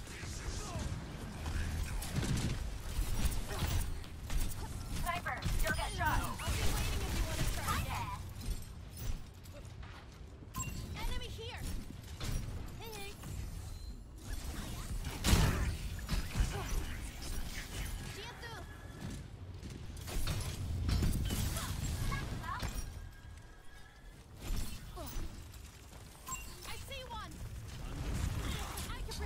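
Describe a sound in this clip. Game weapons fire in rapid bursts with sharp blasts.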